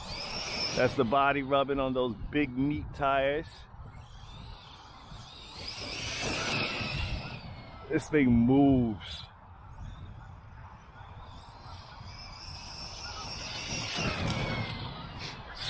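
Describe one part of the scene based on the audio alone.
A small electric motor whines, rising and falling in pitch.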